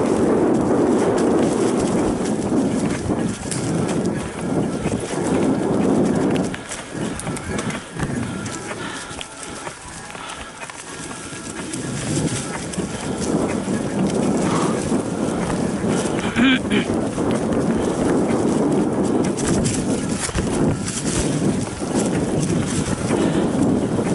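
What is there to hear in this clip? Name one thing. Wind rumbles loudly across a moving bicycle.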